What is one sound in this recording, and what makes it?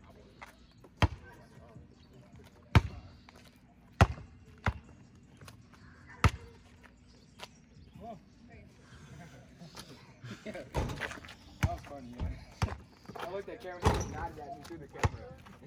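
A basketball bounces on pavement with sharp thuds.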